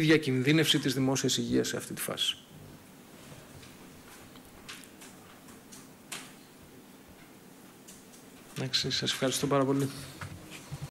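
A man speaks calmly into a microphone, pausing in between.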